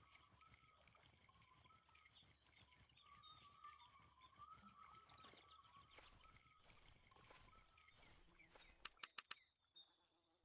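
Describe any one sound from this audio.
A fishing reel clicks steadily as line is wound in.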